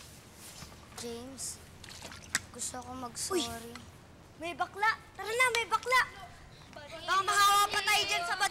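Young boys talk and call out to each other nearby.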